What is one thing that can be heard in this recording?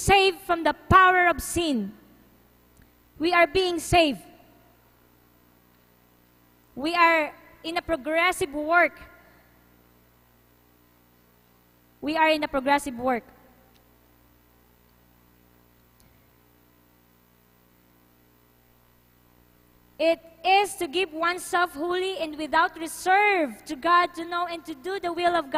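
A young woman sings in short phrases through a microphone, with pauses between them.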